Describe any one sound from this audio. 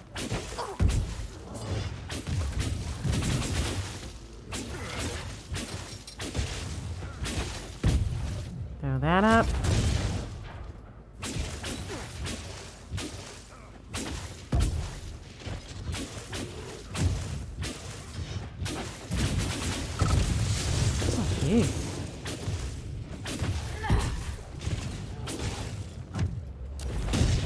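Weapons strike and thud in quick blows.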